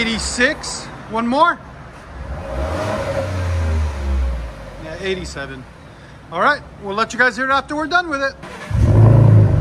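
A pickup truck engine idles and revs through a quiet, muffled exhaust.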